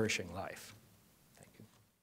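An older man speaks briefly into a microphone.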